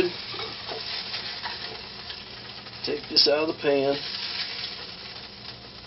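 A metal spatula scrapes against a frying pan.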